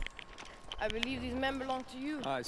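A young woman speaks calmly.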